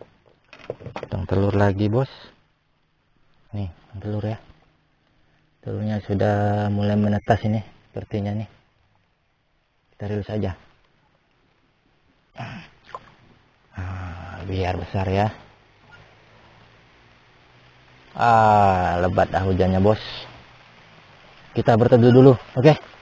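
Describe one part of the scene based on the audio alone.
A man talks up close, calmly and in short bursts.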